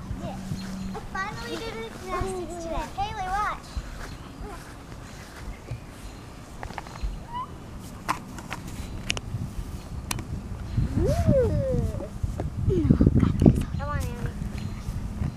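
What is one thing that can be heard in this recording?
A young girl talks and exclaims nearby outdoors.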